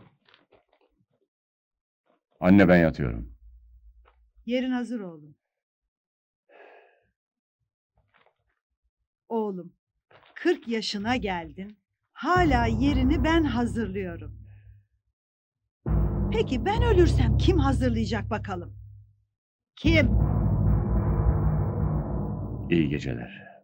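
An elderly woman speaks nearby.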